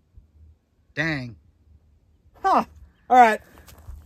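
A man calls out in short, loud words outdoors.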